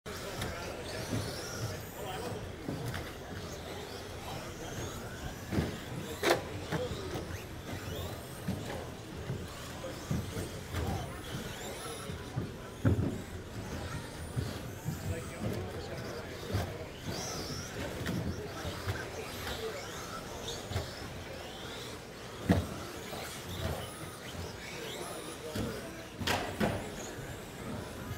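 Model cars knock and clatter against track barriers.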